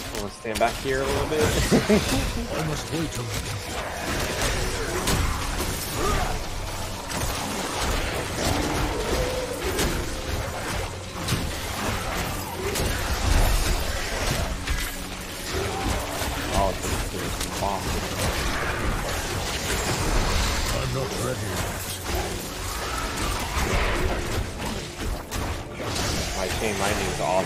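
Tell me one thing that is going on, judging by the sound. Monsters shriek and groan as they are struck down.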